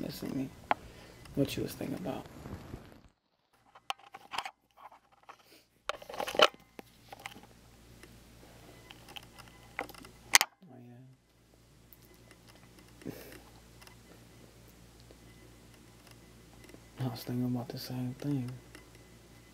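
A young man talks casually, close up through a phone call.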